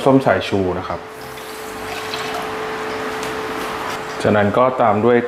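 Liquid pours into a metal pot.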